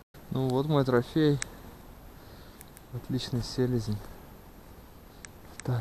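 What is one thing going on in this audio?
Dry grass rustles and crunches underfoot.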